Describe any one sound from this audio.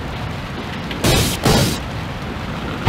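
Sharp hits crack as two giant beetles clash in a video game.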